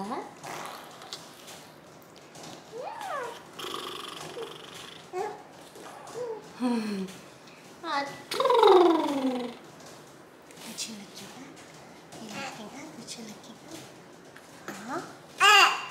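A young woman talks softly and playfully to a baby up close.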